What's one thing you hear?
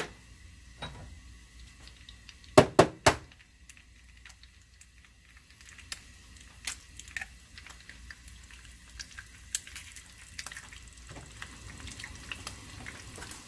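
Eggs sizzle and crackle softly in a hot pan.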